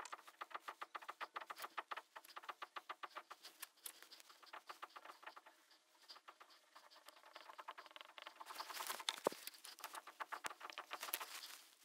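A marker squeaks and scratches in quick strokes on a whiteboard.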